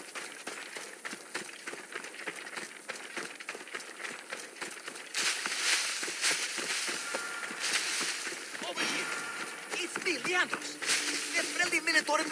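Footsteps crunch on dry, stony ground.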